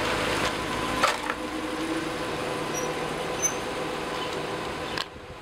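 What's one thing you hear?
A car engine rumbles as the vehicle drives away down a street.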